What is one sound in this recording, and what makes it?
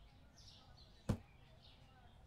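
A shelf thuds into place with a short knock.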